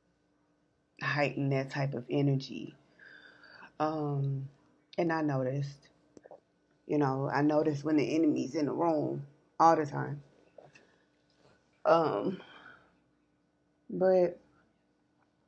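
A woman talks calmly and closely into a microphone, pausing between phrases.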